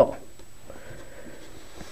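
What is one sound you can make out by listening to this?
A finger presses and rubs softly along sticky tape.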